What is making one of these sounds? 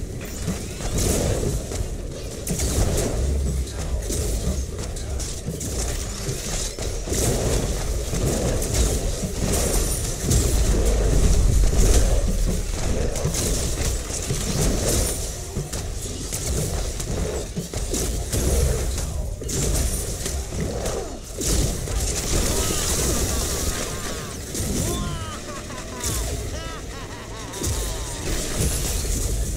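Gunfire and energy blasts crackle and boom in a video game battle.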